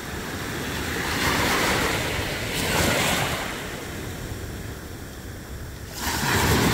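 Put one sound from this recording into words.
Gentle waves lap and wash softly at the shore, rising and falling.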